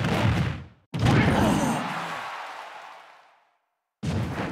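A fiery blast bursts and roars, then fades.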